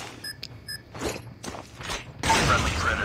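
A rifle clacks as it is handled and reloaded.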